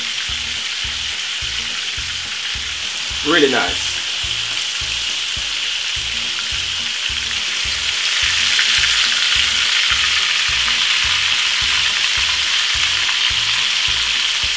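Oil sizzles and crackles steadily in a hot pan.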